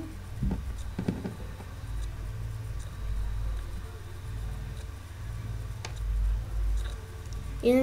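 Fingers rustle and fiddle with a small object at close range.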